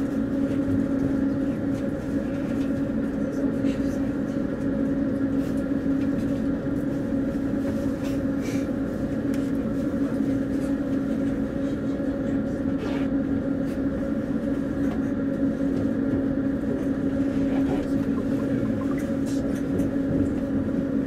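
Wheels click and rattle over the rails.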